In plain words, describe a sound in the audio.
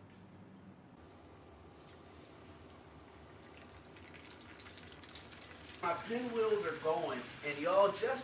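Oil sizzles and bubbles steadily in a pot.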